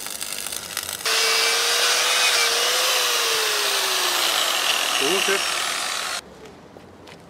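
An angle grinder whines loudly against metal.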